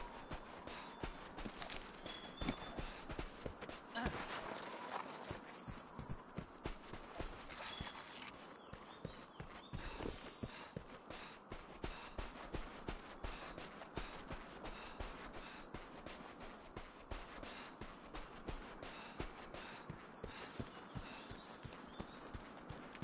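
Footsteps crunch quickly on dirt and sand.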